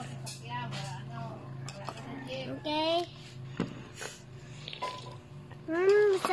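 A spoon clinks against a cup.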